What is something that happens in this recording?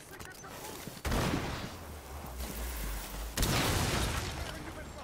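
Wooden boards splinter and debris clatters.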